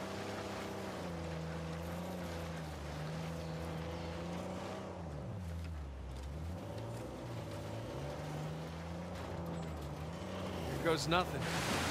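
A jeep engine hums steadily, its pitch dipping and rising as it drives over rough ground.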